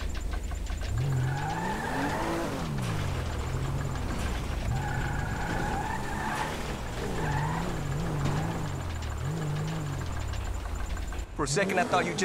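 A car engine revs up and down.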